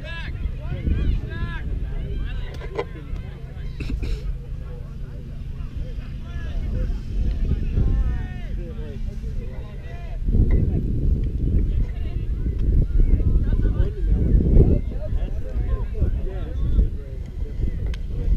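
People chatter and call out across the field outdoors.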